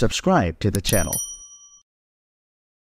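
A small notification bell chimes once.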